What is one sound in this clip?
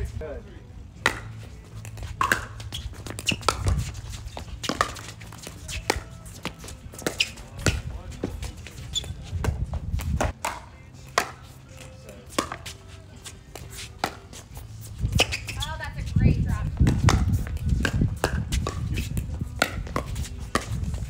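Paddles smack a plastic ball back and forth in sharp pops.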